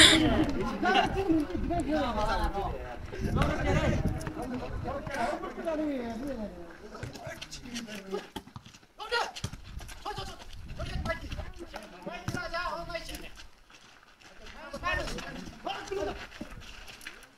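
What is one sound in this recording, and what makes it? Men shout and call out outdoors during a ball game.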